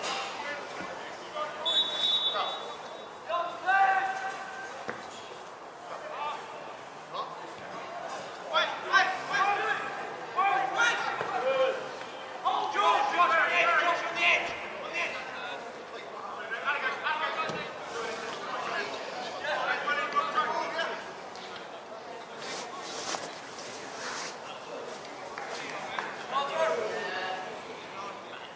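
Players shout to each other across a field outdoors.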